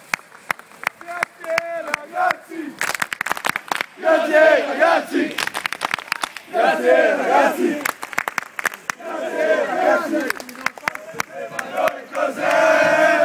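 A crowd of young men chants and shouts loudly outdoors.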